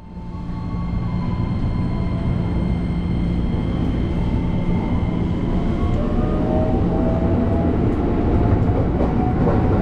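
A train rumbles and hums steadily from inside a carriage.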